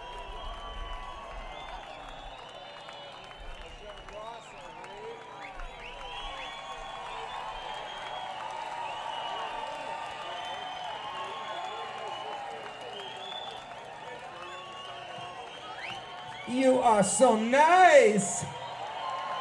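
A large crowd cheers and whistles in a big open space.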